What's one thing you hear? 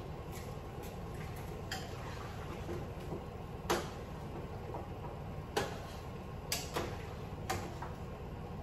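A metal spoon clinks against a pot.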